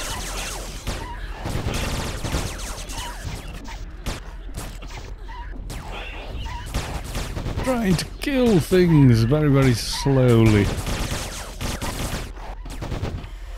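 Game battle effects clash and crackle.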